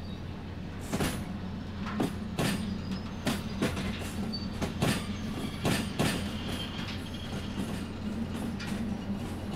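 Wheels clack over rail joints and points.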